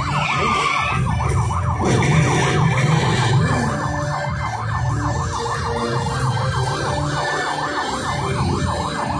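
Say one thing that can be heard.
Car engines rumble and rev loudly.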